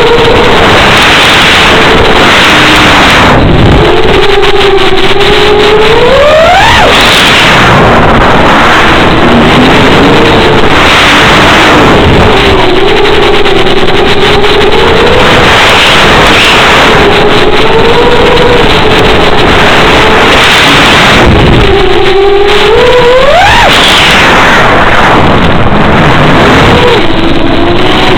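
A small electric motor whines steadily, its pitch rising sharply as it revs up and dropping back.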